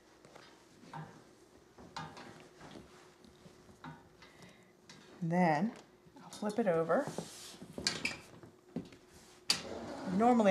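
A metal frame clinks and rattles as it is handled.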